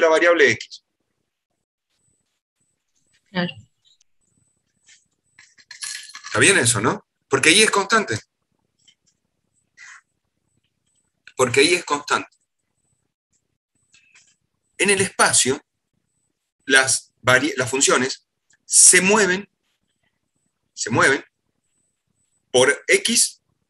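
A middle-aged man talks calmly in short bursts with pauses, heard through an online call microphone.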